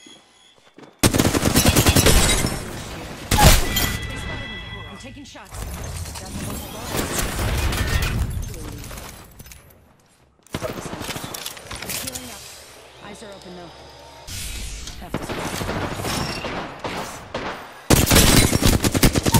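Gunfire from a game rings out in loud bursts.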